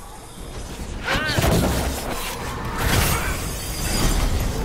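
Weapons clash and blasts burst in a loud fight.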